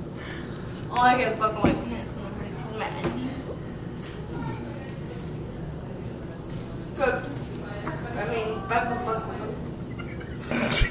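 A young woman talks close by.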